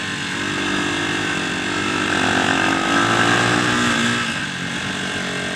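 A motorcycle engine hums steadily up close, swelling louder for a moment.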